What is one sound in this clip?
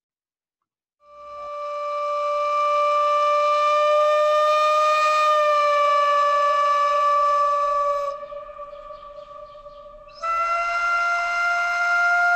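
A wind instrument plays a steady, reedy tone that jumps higher near the end, heard through a recording.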